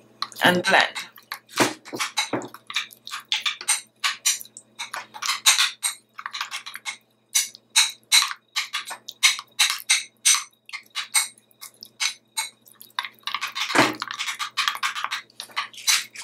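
A metal spoon scrapes and clinks against a glass bowl while mixing a thick paste.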